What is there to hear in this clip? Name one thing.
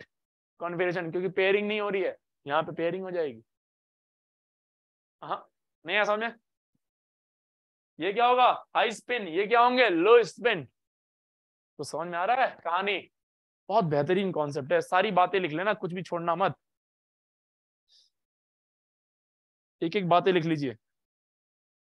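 A young man lectures calmly through a microphone, in short bursts with pauses.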